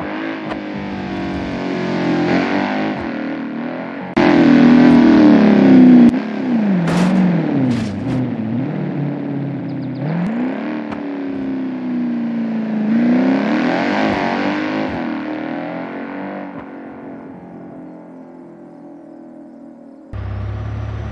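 A car engine revs hard, its pitch rising and falling as the gears shift.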